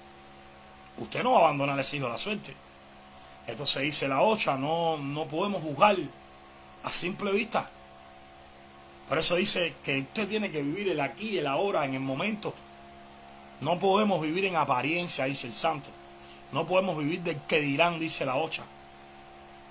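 A man speaks close to the microphone with animation, in bursts with pauses.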